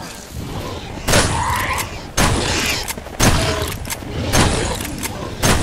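A shotgun fires several loud shots.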